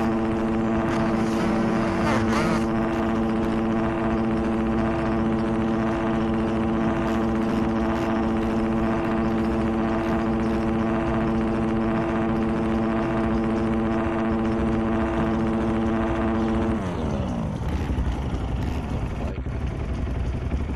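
A motorbike engine idles steadily with a loud drone, then its pitch drops and wavers.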